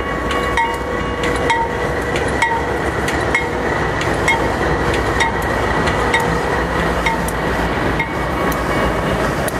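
A crossing bell dings steadily.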